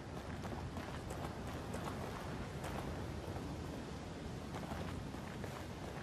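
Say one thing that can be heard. Footsteps crunch slowly over grass and gravel.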